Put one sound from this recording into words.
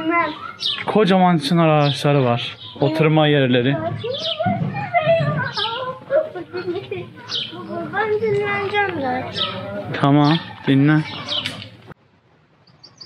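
A boy talks excitedly close by.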